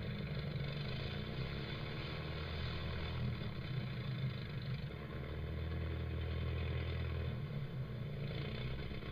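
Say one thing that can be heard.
An old propeller engine drones steadily.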